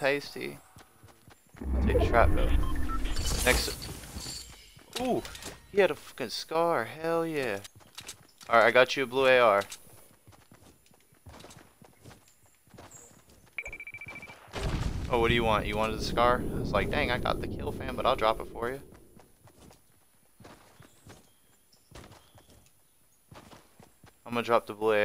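Footsteps patter quickly on grass.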